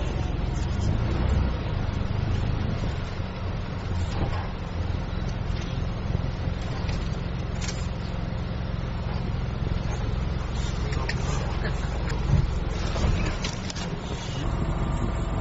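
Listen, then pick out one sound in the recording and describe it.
The bus rattles and clunks as it rolls along.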